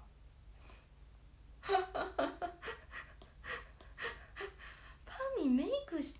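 A young woman laughs lightly.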